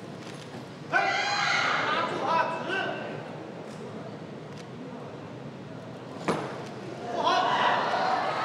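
A crowd in a large hall cheers and shouts loudly.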